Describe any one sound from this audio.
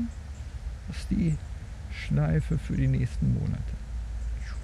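An elderly man speaks calmly outdoors.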